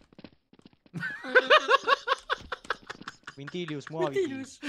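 A man laughs heartily, close to a microphone.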